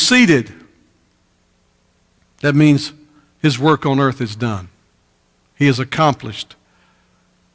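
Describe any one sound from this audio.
A middle-aged man speaks through a microphone in a slow, emphatic preaching voice, with pauses.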